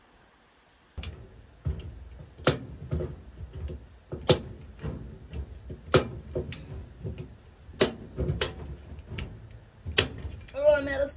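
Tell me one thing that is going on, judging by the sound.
A staple gun snaps sharply again and again.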